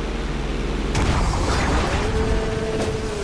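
A plane crashes into water with a loud splash.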